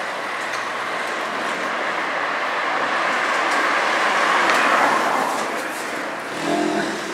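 A car drives past close by, its engine and tyres swelling and then fading.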